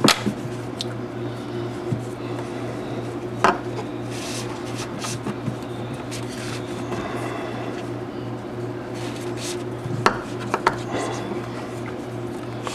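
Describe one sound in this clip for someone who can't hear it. Hands handle and rustle a braided cord, with soft clicks and taps.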